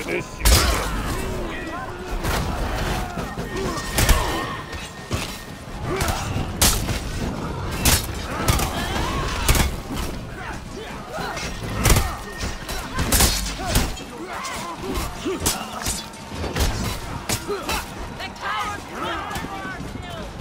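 Swords clash and strike against shields in quick bursts.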